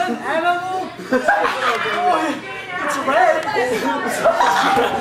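A second young man laughs.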